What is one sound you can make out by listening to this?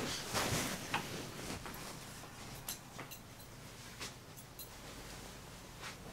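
Clothes rustle as a man pulls them from a wardrobe.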